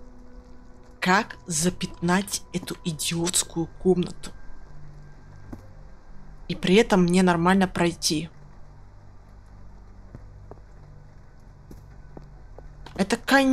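A young person talks with animation close to a microphone.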